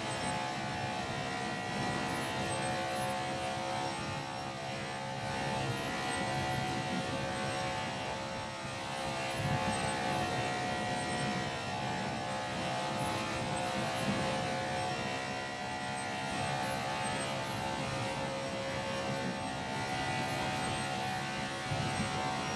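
A stock car V8 engine roars at high revs, heard from inside the car.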